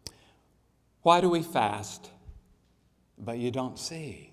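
A man reads aloud calmly into a microphone.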